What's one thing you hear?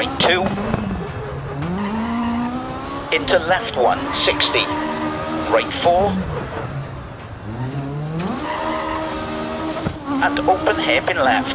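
A rally car engine revs hard, rising in pitch and dropping with each gear change.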